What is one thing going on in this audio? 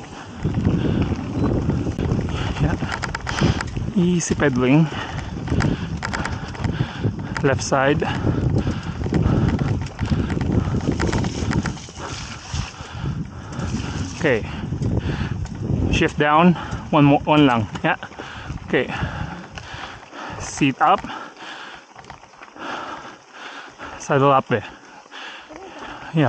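Bicycle tyres roll and rattle over a rough dirt trail.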